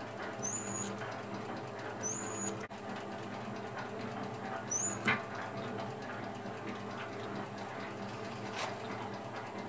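A lathe motor hums steadily as the workpiece spins.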